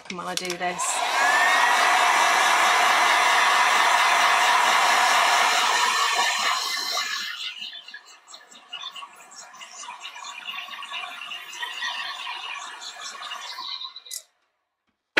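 A heat gun blows with a loud, steady whoosh and then quietens.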